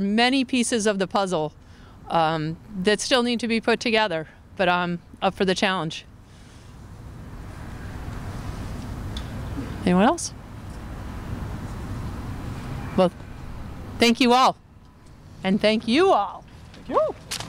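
A woman speaks clearly into a microphone outdoors.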